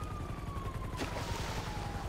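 Water splashes as a body drops into it.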